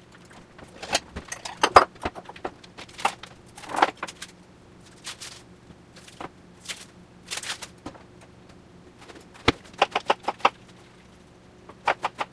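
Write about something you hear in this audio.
A knife chops on a wooden cutting board.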